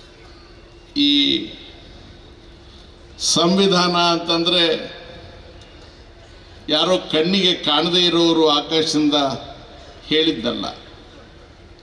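An elderly man speaks forcefully into a microphone over a loudspeaker, with pauses between phrases.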